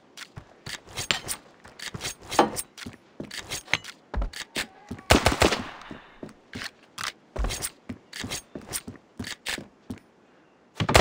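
Quick footsteps thud on hard floors.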